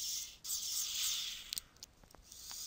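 An electronic sparkling effect hisses and crackles.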